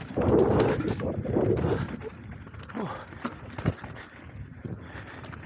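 A bicycle rattles and clunks over bumps.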